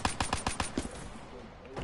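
A rifle fires a rapid burst of loud gunshots.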